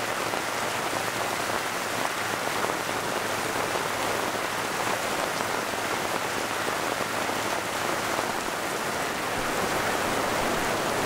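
Heavy rain pours down steadily onto gravel and a roof.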